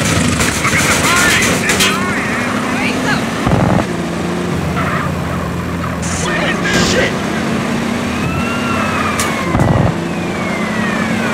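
Tyres screech on the road as the car turns.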